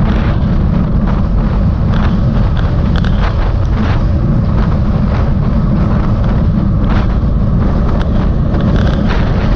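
Wind roars loudly against a microphone while riding outdoors.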